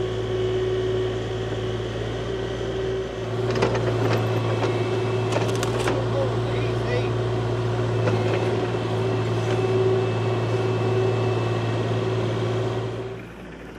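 A digger's bucket scrapes and scoops soil.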